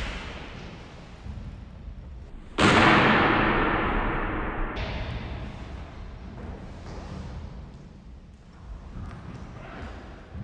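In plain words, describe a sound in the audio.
Feet thump and shuffle on a wooden floor.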